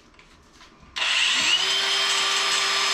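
An angle grinder whirs up to speed and runs with a high whine.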